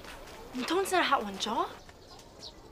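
A young woman calls out loudly nearby.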